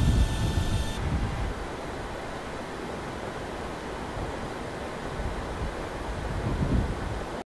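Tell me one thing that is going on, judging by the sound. A low, steady rumble fills an aircraft cabin.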